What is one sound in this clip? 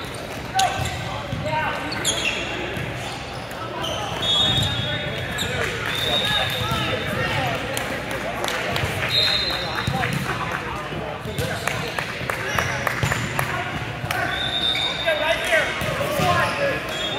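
Many young men and women shout and call out across a large echoing gym.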